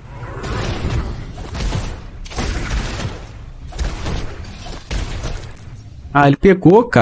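Video game combat effects crackle and blast.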